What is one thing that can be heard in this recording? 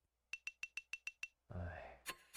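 A game's score counter ticks quickly in a row with short electronic beeps.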